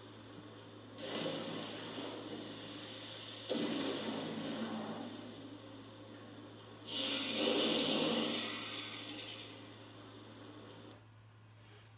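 A huge beast roars loudly in bursts.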